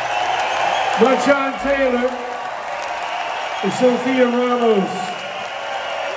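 A man sings through a microphone over loudspeakers.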